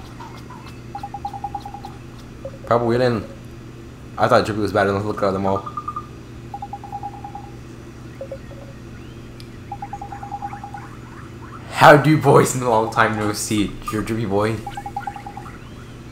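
Short bursts of rapid electronic beeps sound now and then.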